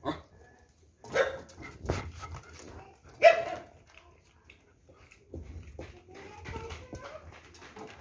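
A dog brushes close against the microphone with muffled rustling and bumps.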